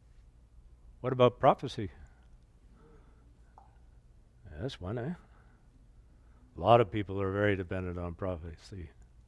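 An older man speaks with animation through a microphone, pausing between phrases.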